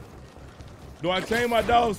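A young man speaks loudly and with animation, close to a microphone.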